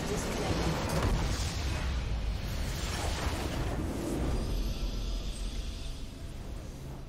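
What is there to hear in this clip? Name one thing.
A game's base explodes with a loud rumbling blast.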